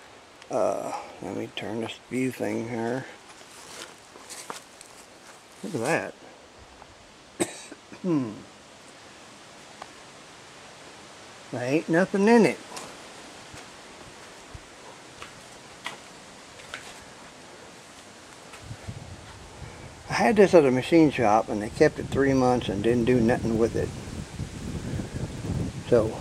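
An older man talks calmly, close by, in short bursts with pauses.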